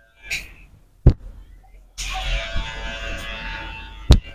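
Hands slap sharply on a head.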